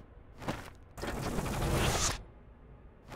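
Paper pages rustle as a heavy book opens.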